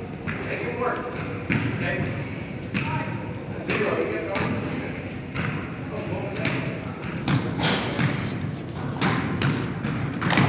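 A basketball bounces sharply on a hardwood floor in a large echoing hall.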